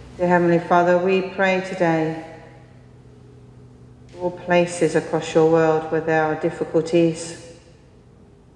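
A woman sings a slow chant in a large echoing hall.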